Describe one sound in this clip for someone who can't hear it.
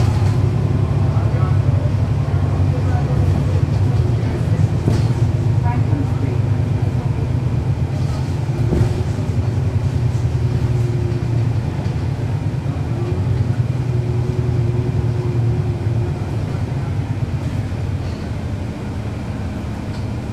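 A bus engine idles with a steady low rumble close by.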